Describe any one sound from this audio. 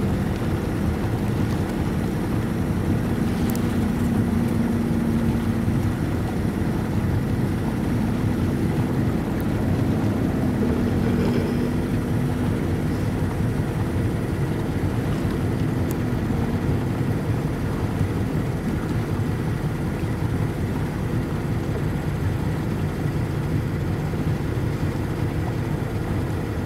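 Wind blows steadily and roughly across open water.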